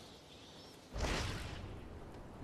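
A heavy thud sounds as something lands.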